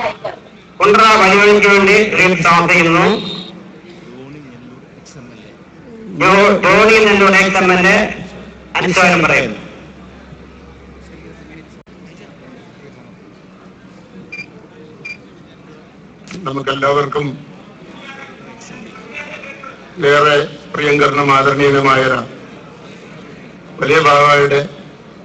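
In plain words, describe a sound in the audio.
A man chants a prayer in short, loud phrases through a loudspeaker.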